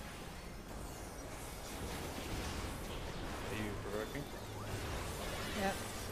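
Game battle effects whoosh and clash.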